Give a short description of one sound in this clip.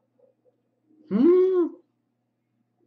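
A man calls out a single short, drawn-out word up close.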